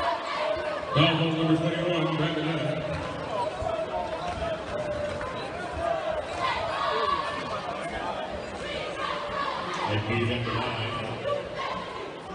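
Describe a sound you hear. A whistle blows loudly.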